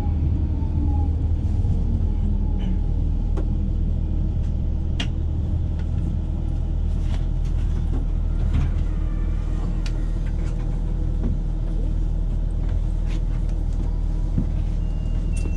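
A train rumbles steadily along the tracks nearby.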